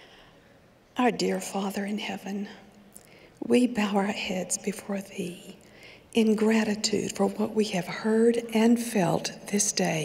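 A middle-aged woman speaks calmly into a microphone in a large hall.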